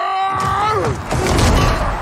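Fighters clash with heavy blows.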